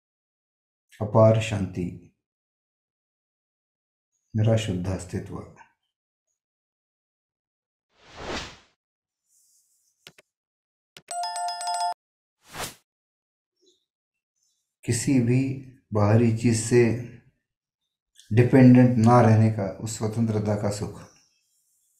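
An elderly man speaks calmly and slowly, close to a microphone, with long pauses.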